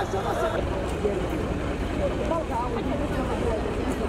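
Many men talk and shout outdoors in a busy crowd.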